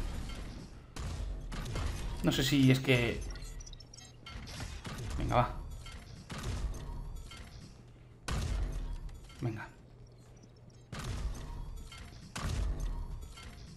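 Game explosions boom.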